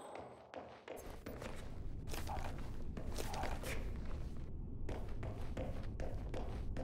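Footsteps tap on a hard floor in an echoing space.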